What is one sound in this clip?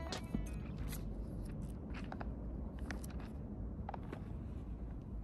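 Thin paper pages riffle and rustle as they are flipped.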